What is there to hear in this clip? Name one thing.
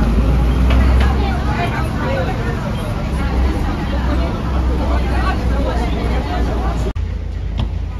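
A bus engine rumbles steadily while the bus drives.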